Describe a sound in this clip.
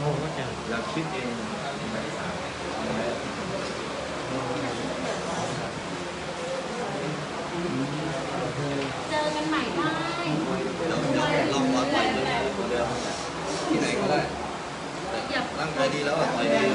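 A young man speaks close to a microphone in a calm, steady voice.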